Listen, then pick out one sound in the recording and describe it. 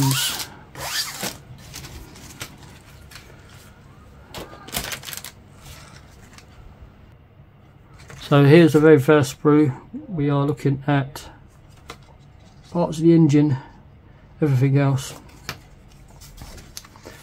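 A plastic parts frame rattles and clicks as hands handle it.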